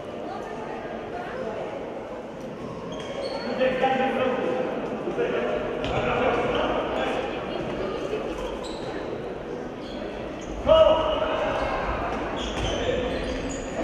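A ball thuds as it bounces on the floor.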